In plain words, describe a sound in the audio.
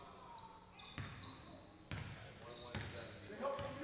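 A basketball bounces on the court with echoing thuds.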